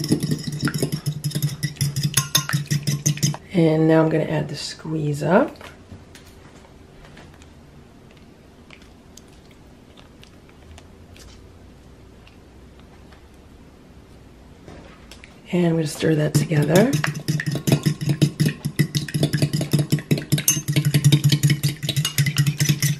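A fork whisks rapidly, clinking against the side of a glass jug.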